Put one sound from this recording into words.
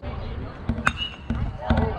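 A bat cracks sharply against a baseball outdoors.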